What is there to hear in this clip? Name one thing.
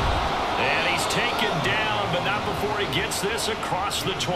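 Football players collide hard in a tackle.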